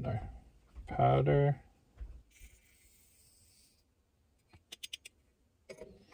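A small metal hand tool clicks as it is squeezed.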